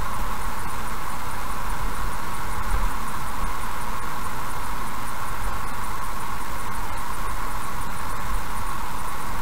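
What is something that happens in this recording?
A car engine hums steadily.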